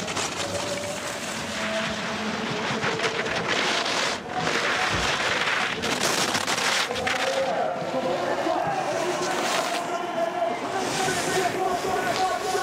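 Skis hiss and scrape over hard snow at high speed.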